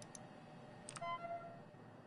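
A computer chime rings out briefly.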